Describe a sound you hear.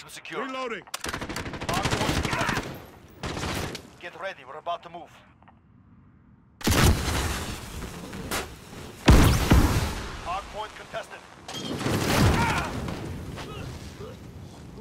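Gunfire bursts in rapid volleys.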